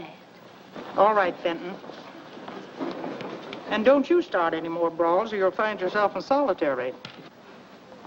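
An elderly woman speaks firmly and briskly.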